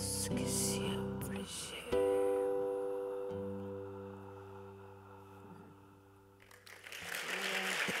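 A woman sings long held notes into a microphone.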